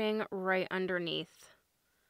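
A glass jar lid clinks.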